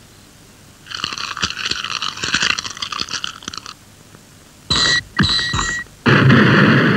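A cartoon man yells and jabbers frantically.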